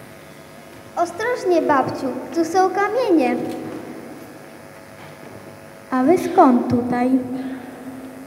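A child's voice rings out in an echoing hall.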